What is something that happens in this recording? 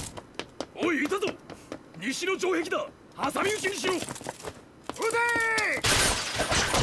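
Men shout urgently, close by.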